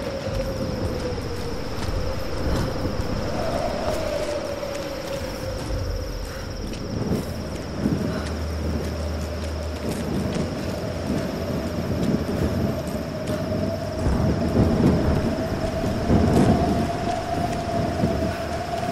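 Footsteps crunch steadily on stone and gravel.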